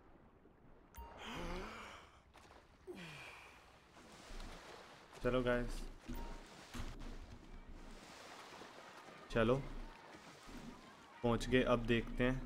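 Water splashes as a swimmer strokes through waves.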